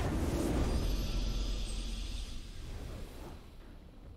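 A video game victory fanfare plays.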